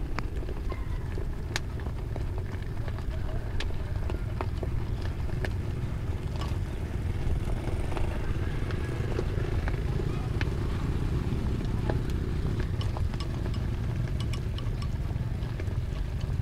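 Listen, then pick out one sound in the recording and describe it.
Food simmers and bubbles in a pot.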